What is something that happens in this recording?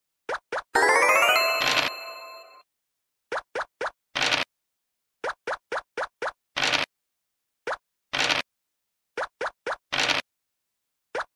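Game pieces tick in quick steps as they hop along the board.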